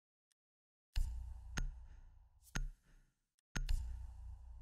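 Short electronic menu clicks sound as options are picked.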